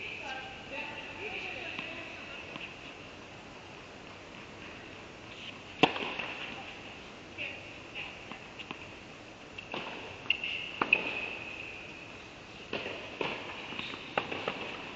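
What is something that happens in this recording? Tennis shoes squeak on the court.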